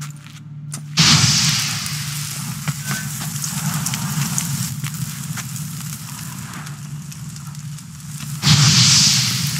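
A fiery explosion bursts with a loud roar.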